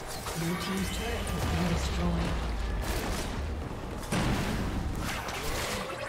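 Game spell effects and attacks crackle and clash in a fight.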